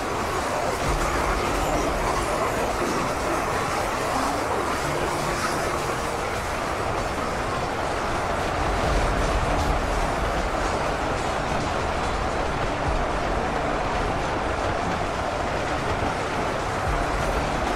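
A large battle roars steadily.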